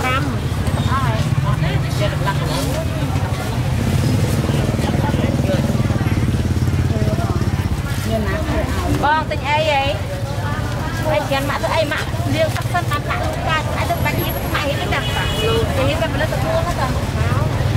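Plastic bags rustle as fish are handled.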